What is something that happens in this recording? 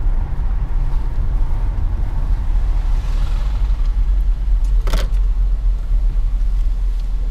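A car engine rumbles low and steady as the car drives down a city street.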